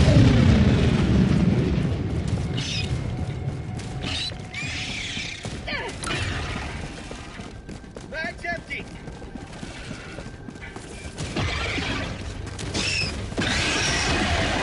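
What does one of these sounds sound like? Heavy footsteps run over soft ground.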